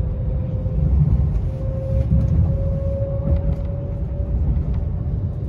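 A passing train hums with a steady whine.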